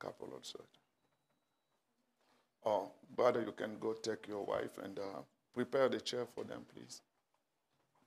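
A middle-aged man speaks calmly into a microphone in a reverberant hall.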